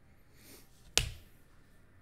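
A plastic card case clicks against a table.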